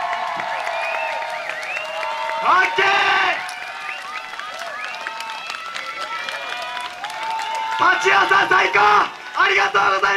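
Upbeat festival music plays through a loudspeaker outdoors.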